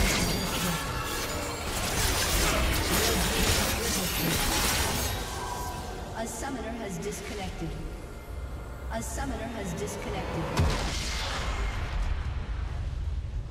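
Magic spells crackle and burst in a busy video game battle.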